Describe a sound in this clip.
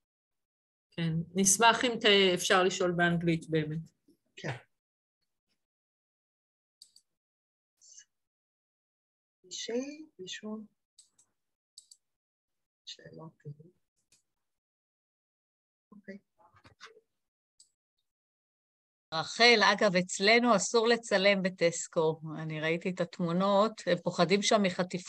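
Women speak one after another over an online call.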